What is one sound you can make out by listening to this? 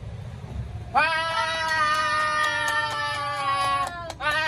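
A young man shouts out in a long excited cry close by.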